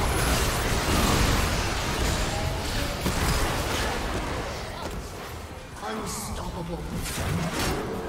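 Spell effects crackle and burst in a fast game battle.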